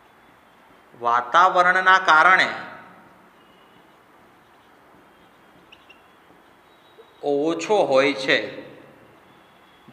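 A man speaks calmly, as if teaching, close by.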